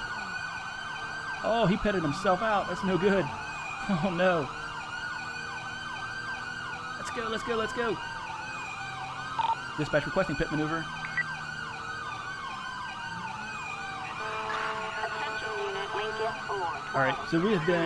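A police siren wails steadily close by.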